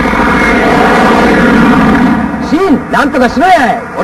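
A young woman pleads over a radio.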